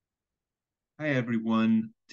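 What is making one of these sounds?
A young man speaks briefly and calmly over an online call.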